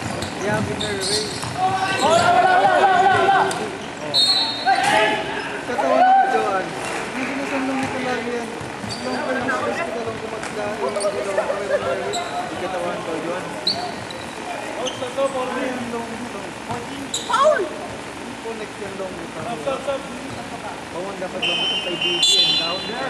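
Basketball shoes squeak sharply on a wooden court.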